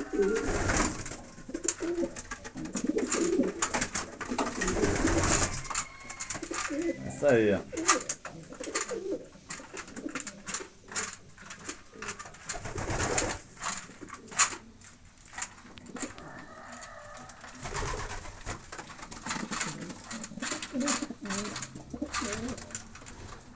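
Pigeons peck at grain in a wooden trough with quick taps.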